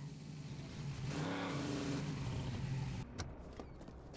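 A car engine rumbles and idles.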